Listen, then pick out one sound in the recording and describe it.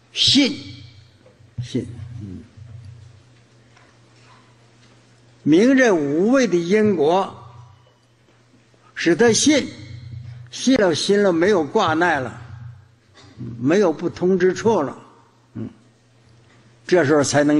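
An elderly man speaks slowly and calmly into a microphone, with pauses between phrases.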